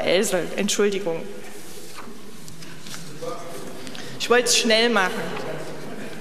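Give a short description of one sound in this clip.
A woman speaks calmly into a microphone in a large, echoing hall.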